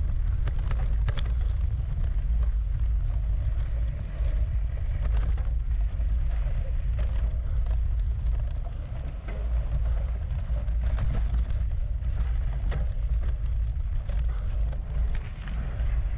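Wind rumbles steadily against a moving bicycle.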